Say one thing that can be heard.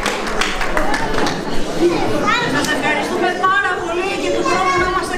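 A choir sings.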